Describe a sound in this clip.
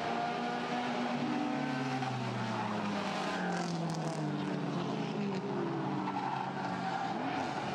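Several race car engines roar and drone as the cars speed around a track.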